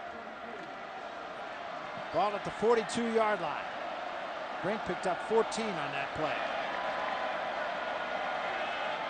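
A large stadium crowd roars steadily in the open air.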